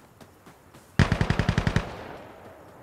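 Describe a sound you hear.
A rifle fires a rapid burst of shots with a sharp echo.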